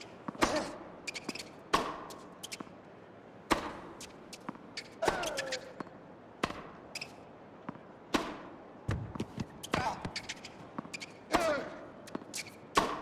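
A tennis racket strikes a ball with sharp pops, back and forth.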